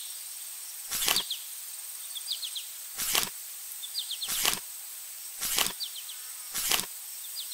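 Puzzle pieces click softly into place.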